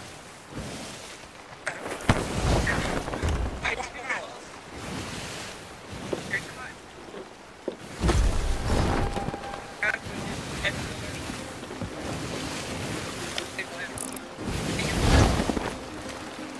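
Waves wash and splash against a wooden ship.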